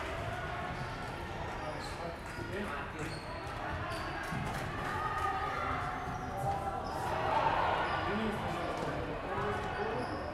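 A table tennis ball clicks back and forth on paddles and a table.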